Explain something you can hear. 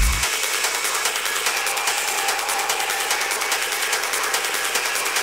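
Electronic dance music with a fast, steady beat plays loudly through speakers.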